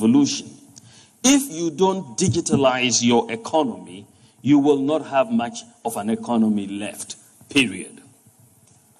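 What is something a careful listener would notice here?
A man speaks with animation into a microphone, heard over loudspeakers in a large hall.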